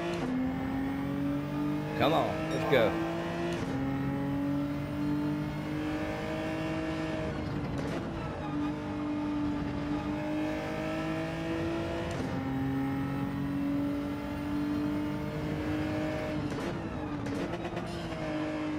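A racing car engine roars steadily, rising in pitch through the gears and dropping at gear changes.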